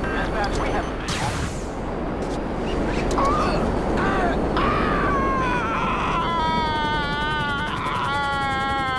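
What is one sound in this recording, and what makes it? Wind rushes loudly past a falling person.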